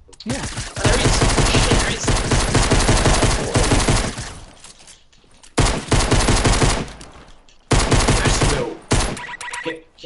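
Loud gunfire rattles in bursts.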